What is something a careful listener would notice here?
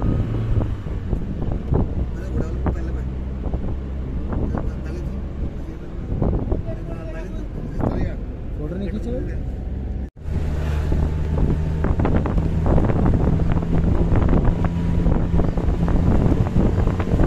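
A vehicle engine hums steadily while driving along a rough road.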